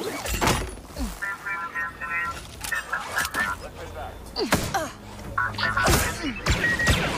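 A robot beeps and chirps electronically.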